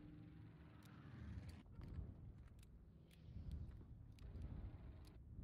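A plane engine drones low and steady.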